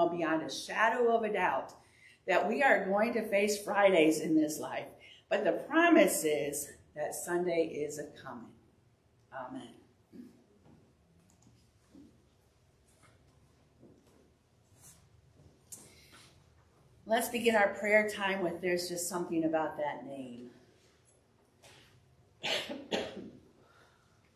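An elderly woman speaks calmly through a microphone in a room with slight echo.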